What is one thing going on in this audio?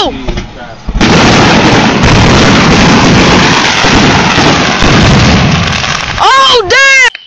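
Fireworks explode with a loud, roaring crackle.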